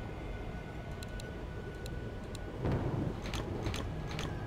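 Soft interface clicks tick several times.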